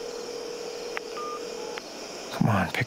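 A phone rings faintly through a handset.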